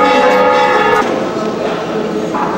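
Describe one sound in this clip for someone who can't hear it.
A crowd murmurs nearby.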